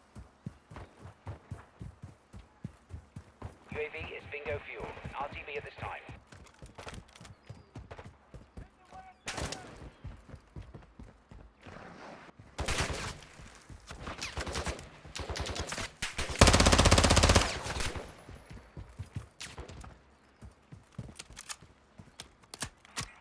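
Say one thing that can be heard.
Quick footsteps run over ground and pavement.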